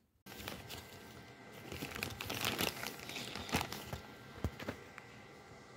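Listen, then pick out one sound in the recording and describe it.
Plastic packaging crinkles and rustles in a hand.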